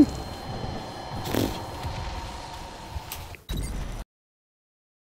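A young man speaks quietly into a headset microphone.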